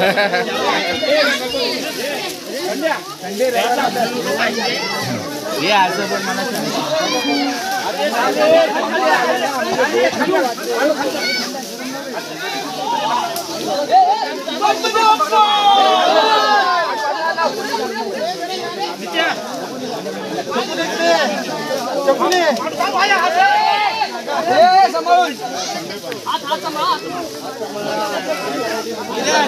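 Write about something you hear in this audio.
A crowd of men chant and talk loudly together outdoors.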